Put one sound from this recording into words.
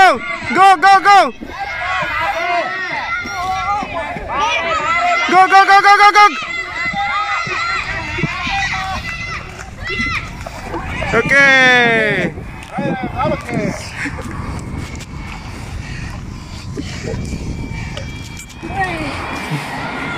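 Children shout and cheer loudly nearby, outdoors.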